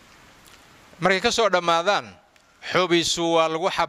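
An elderly man speaks slowly and steadily, close to a microphone.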